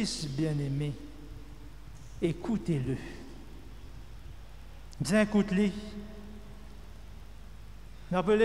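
A man speaks slowly and deliberately into a microphone, with pauses, in a room with some echo.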